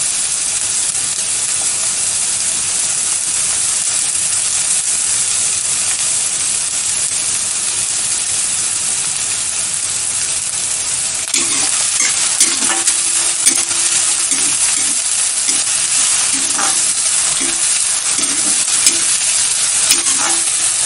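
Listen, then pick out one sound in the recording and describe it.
Onions sizzle steadily in hot oil.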